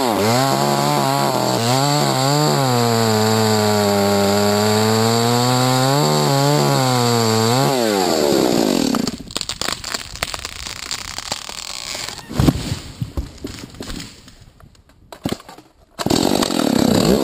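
A chainsaw roars loudly, revving up and down as it cuts through wood.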